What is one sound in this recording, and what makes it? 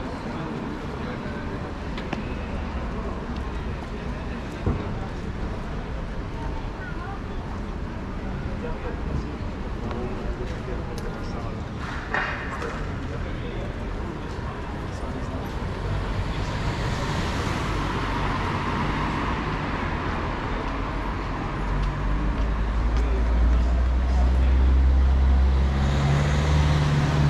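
Street noise and passing cars hum steadily outdoors.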